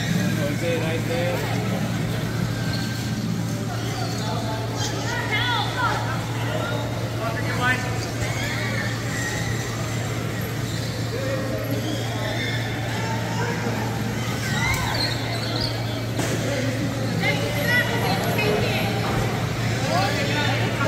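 Voices call out across a large echoing hall.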